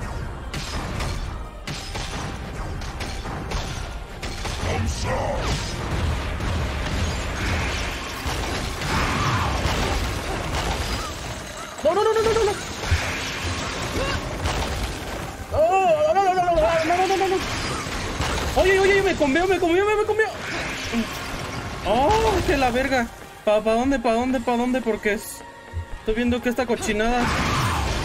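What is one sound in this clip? Game combat sounds whoosh and crash.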